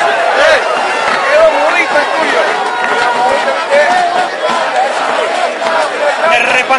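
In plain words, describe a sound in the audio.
A large crowd of spectators shouts and chants outdoors.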